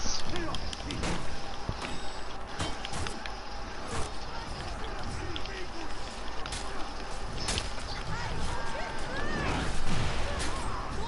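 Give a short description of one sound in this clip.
Swords clash and clang in a melee fight.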